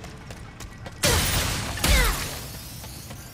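A crate bursts apart with a loud crash and sparkling chimes.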